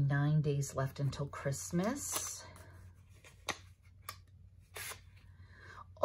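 Paper rustles as a card is slipped out of a small envelope.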